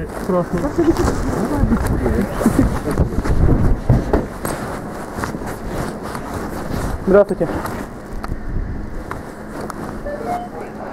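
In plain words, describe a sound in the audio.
Padded jacket fabric rustles and rubs close against the microphone.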